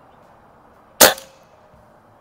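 An air rifle fires with a sharp crack.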